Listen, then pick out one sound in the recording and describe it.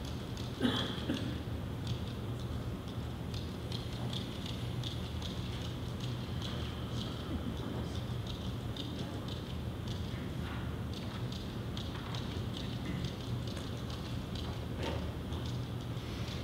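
A middle-aged man speaks through a microphone in a large echoing hall.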